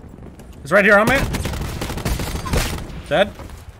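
Rapid gunshots crack from close by.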